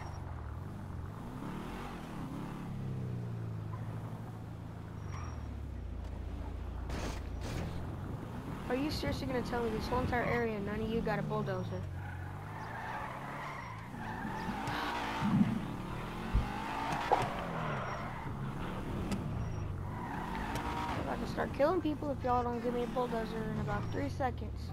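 A sports car engine revs up and down as the car drives.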